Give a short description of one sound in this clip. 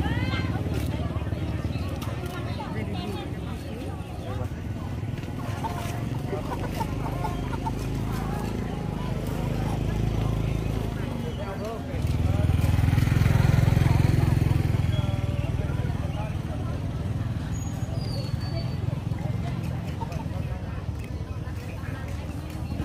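Several women talk calmly close by.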